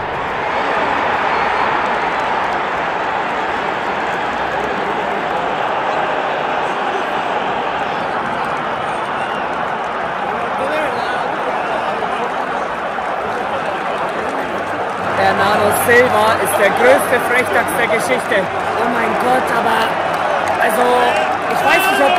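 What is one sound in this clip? A large stadium crowd roars and chants loudly.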